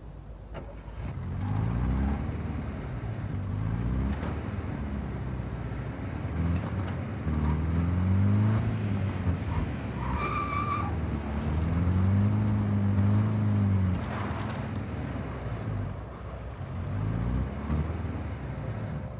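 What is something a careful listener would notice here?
Tyres roll over pavement.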